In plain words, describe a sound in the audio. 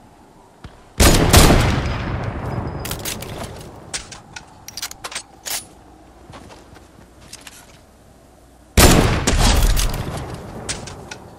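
A sniper rifle fires two loud shots that echo and fade away.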